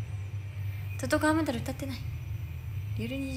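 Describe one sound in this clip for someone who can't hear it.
A young woman speaks briefly in a soft, high voice close to the microphone.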